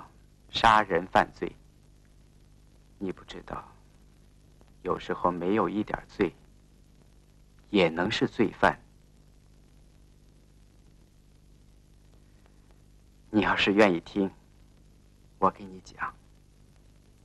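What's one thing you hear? A middle-aged man speaks softly and earnestly up close.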